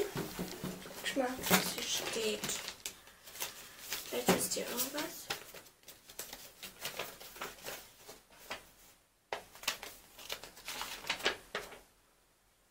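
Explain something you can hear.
Paper and plastic wrapping rustle and crinkle.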